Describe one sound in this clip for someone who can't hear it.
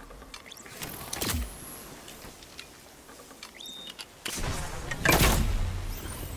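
A gun fires loud blasts.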